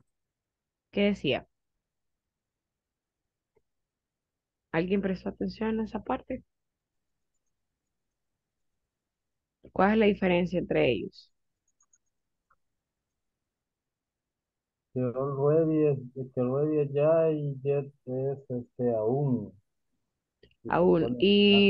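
An adult speaks in bursts over an online call, with pauses between.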